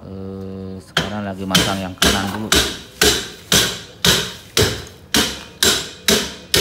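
Metal clangs in quick, regular blows on a brake drum.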